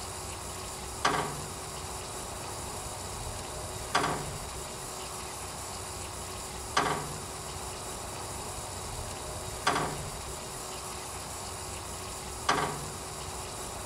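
A water sprinkler ticks with a sharp, regular click every few seconds.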